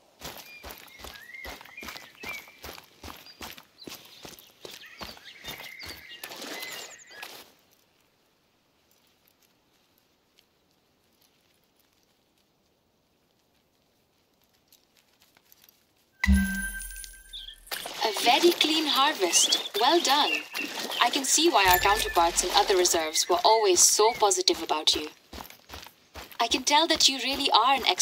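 Footsteps crunch steadily on gravel.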